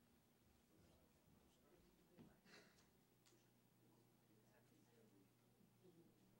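A man speaks quietly in a large room.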